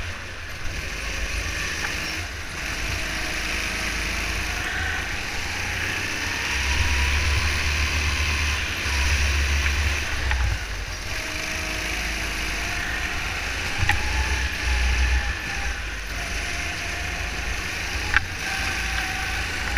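Wind rushes past close by.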